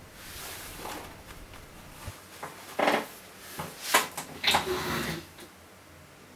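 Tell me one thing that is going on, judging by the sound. A man shuffles and bumps about close by, with loud knocks.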